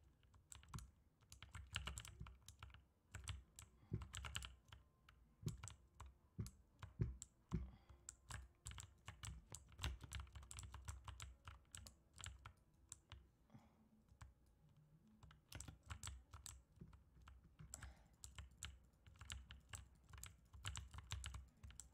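Rapid clicking and sharp game attack sounds repeat throughout.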